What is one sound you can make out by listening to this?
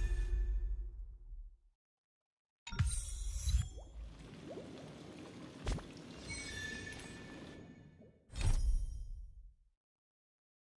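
Short electronic swooshes and chimes sound now and then.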